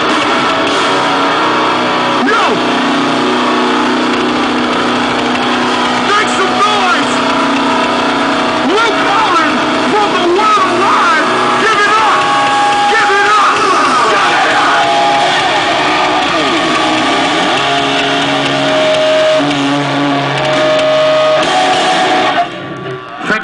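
A band plays loud rock music with electric guitar.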